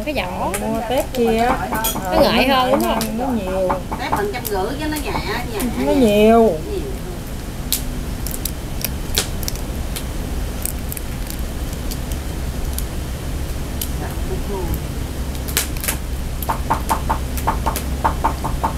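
Food sizzles in a pan.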